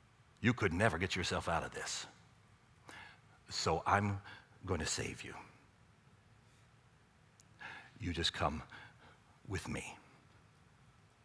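A middle-aged man speaks with animation into a headset microphone, in pauses.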